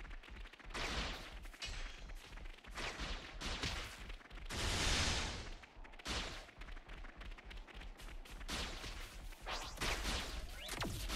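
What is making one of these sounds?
Energy beams whoosh and crackle in repeated bursts.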